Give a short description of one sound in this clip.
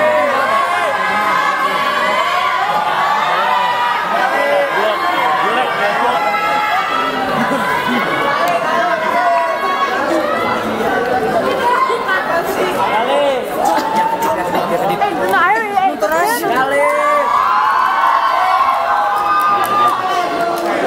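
A crowd of young people chatters and shouts in a large echoing hall.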